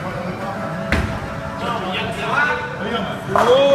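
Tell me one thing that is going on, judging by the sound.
A bowling ball thuds onto a lane and rolls away.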